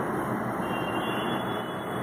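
Oil pours into a pan.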